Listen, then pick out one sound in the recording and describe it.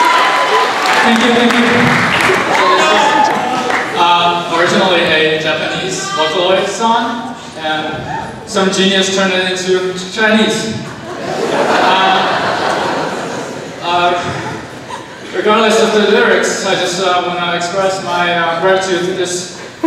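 A young man speaks with animation into a microphone, heard over loudspeakers in an echoing hall.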